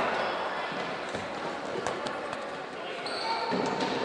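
A ball thuds against a wooden wall.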